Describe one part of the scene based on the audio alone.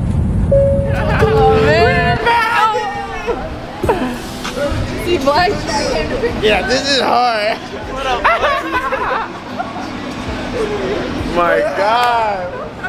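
A woman talks and laughs with animation close by.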